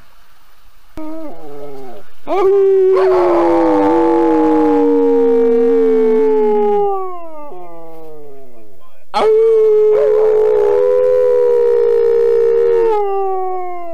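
A dog howls long and loud outdoors.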